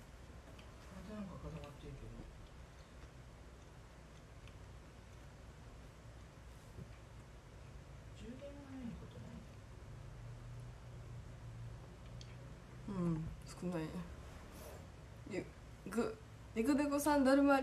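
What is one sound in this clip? A young woman speaks softly and casually, close to the microphone, with pauses.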